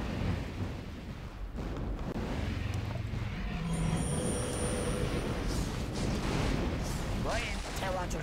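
Game units clash in battle with clanging weapons and spell effects.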